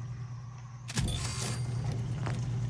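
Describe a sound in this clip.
A heavy mechanical clunk and rattle sounds as a weapon part is fitted.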